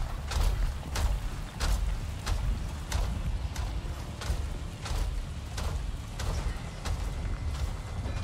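Footsteps tread at an even pace.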